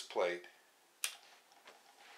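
A switch clicks once.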